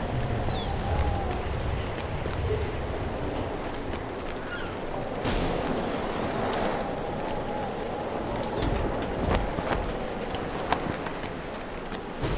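Footsteps run across stone paving.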